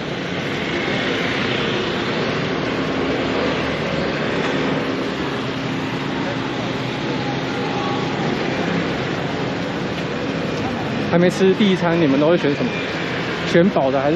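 Motor scooters hum as they ride past close by.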